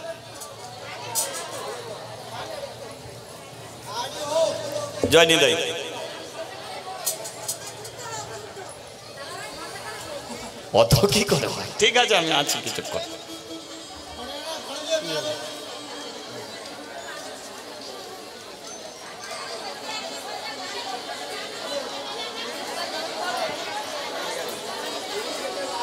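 A man sings with feeling into a microphone, heard through loudspeakers outdoors.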